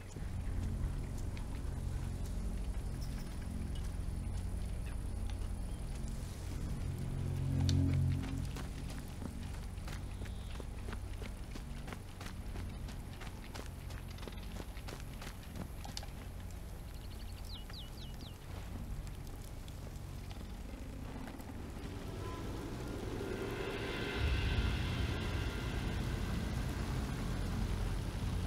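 Footsteps crunch on dirt and creak on wooden boards.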